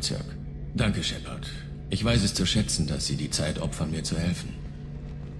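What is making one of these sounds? A man with a rough, layered voice speaks calmly, close by.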